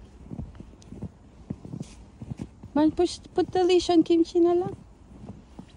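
Footsteps crunch in fresh snow.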